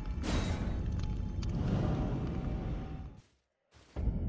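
A deep magical whoosh rumbles and swells, then cuts off.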